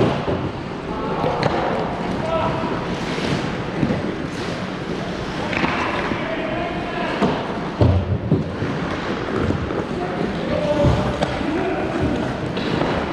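Players shout to each other across the rink.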